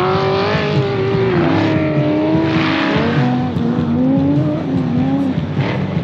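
A rally car engine roars at a distance, revving up and dropping in pitch as it shifts gears.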